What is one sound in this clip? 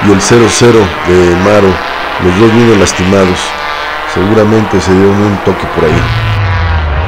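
Racing car engines roar and rev as cars speed past.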